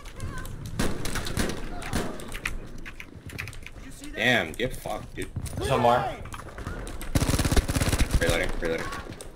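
A rifle fires rapid bursts of gunshots at close range.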